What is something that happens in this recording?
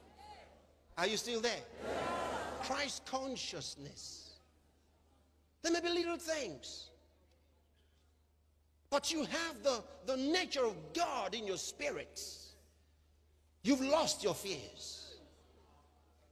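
A man preaches with passion, heard through a microphone with some echo.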